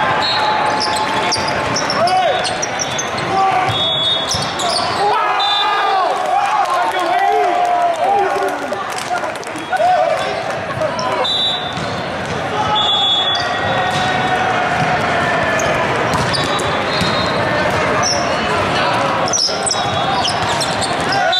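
Young men shout and call out to each other on a volleyball court.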